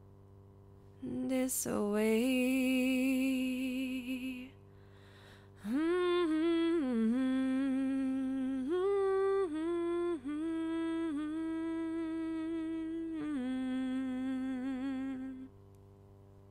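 A young woman sings loudly into a microphone, holding long notes.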